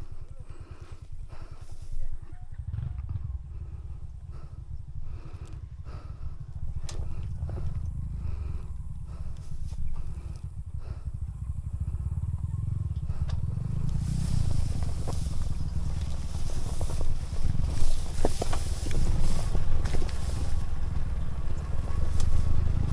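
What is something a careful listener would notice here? Tyres crunch and bump over a rough dirt trail.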